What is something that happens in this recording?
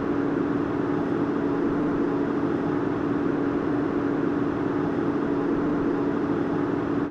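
An airliner's turbofan jet engine hums while the plane taxis.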